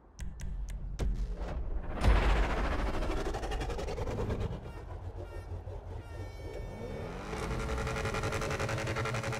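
A sports car engine runs.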